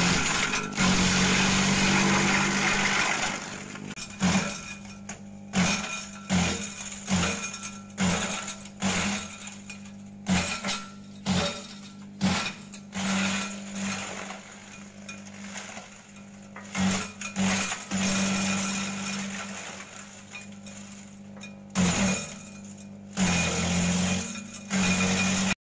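A shredder chops leafy branches with loud bursts of grinding.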